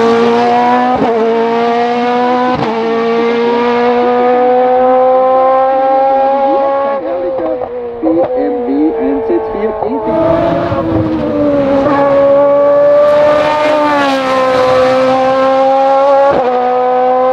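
A race car engine pops and crackles as it shifts.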